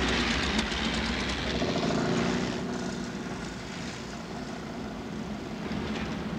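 Tyres crunch over dry sand.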